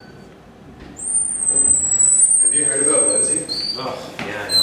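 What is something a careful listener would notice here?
A swinging door opens with a squeak.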